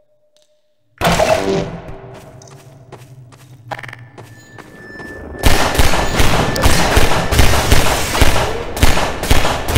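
A pistol fires repeated sharp shots that echo.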